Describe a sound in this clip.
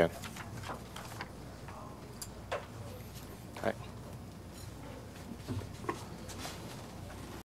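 Several people murmur quietly in a large room.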